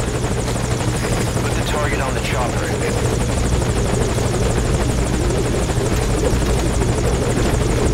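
A helicopter's rotor thumps and its engine drones close by.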